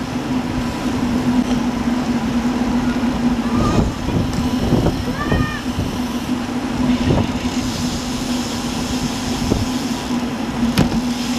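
Bicycle tyres hum on a paved road.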